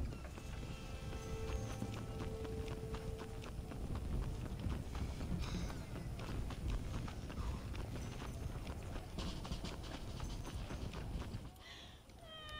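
Footsteps run quickly on packed dirt.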